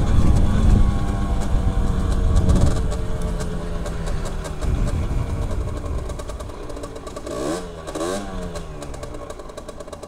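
A motorcycle engine hums and changes pitch as the rider slows and speeds up.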